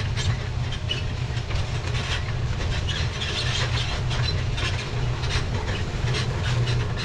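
A large diesel tractor rumbles under load.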